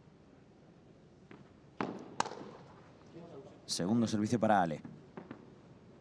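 Padel rackets strike a ball with sharp pops.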